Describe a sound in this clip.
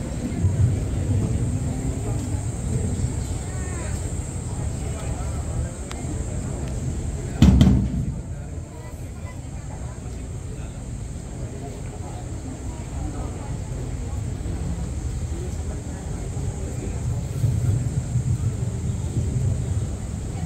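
A large group of people murmurs faintly outdoors.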